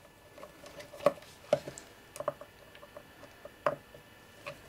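A screwdriver clicks and taps against small metal parts.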